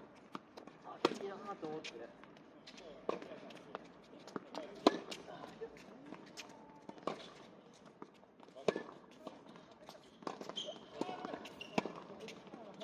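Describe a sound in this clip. A tennis ball is struck sharply with a racket, again and again, with a short echo.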